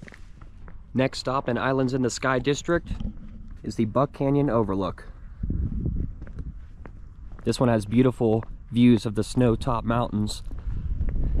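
A man speaks calmly and close up, as if into a microphone.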